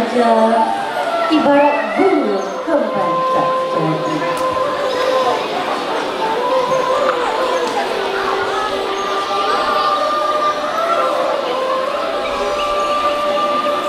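A woman sings through a microphone and loudspeakers in an echoing hall.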